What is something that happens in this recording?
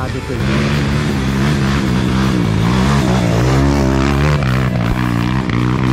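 A dirt bike engine revs and putters up a rough trail close by.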